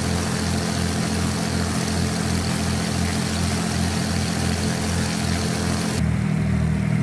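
A propeller engine drones steadily outside an aircraft.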